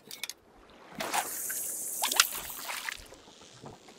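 A fishing rod swishes as a line is cast out over water.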